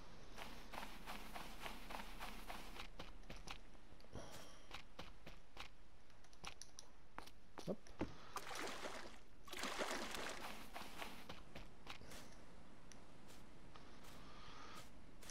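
Footsteps fall on sand and grass.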